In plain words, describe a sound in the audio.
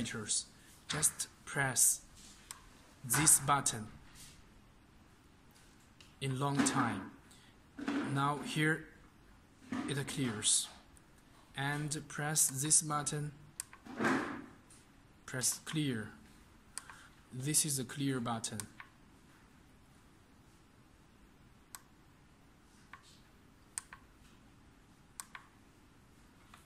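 Buttons on a keypad click softly under a fingertip.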